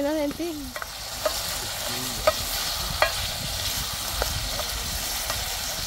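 Vegetables sizzle in a hot pot.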